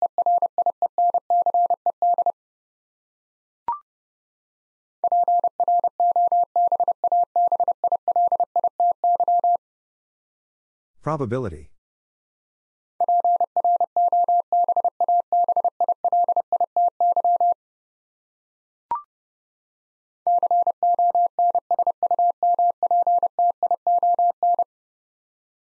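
A telegraph key sends rapid Morse code beeps in bursts.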